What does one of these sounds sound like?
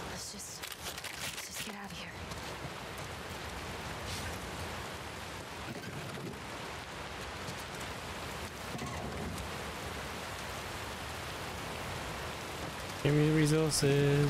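Footsteps crunch over loose debris.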